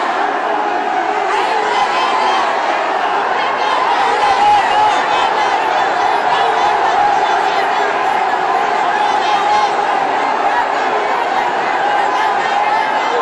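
A large crowd of men and women chants loudly together.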